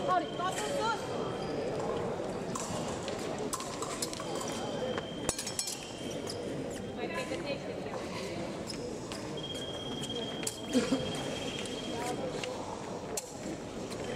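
Fencers' shoes squeak and stamp on the floor.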